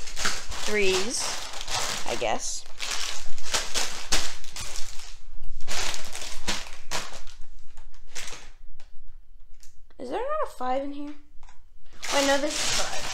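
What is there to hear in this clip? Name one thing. Plastic bags crinkle and rustle close by.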